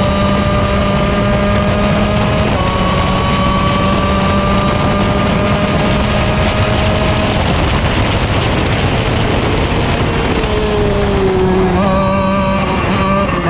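A kart engine buzzes loudly and steadily close by, rising and falling in pitch.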